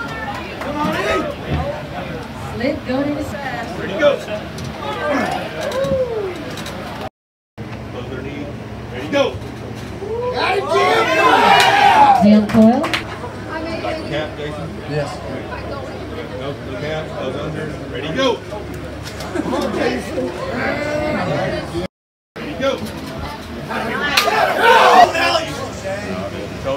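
A crowd in a noisy room chatters and cheers.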